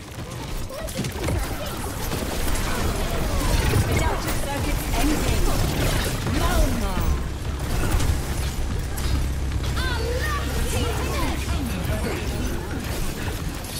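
Energy blasts and explosions boom.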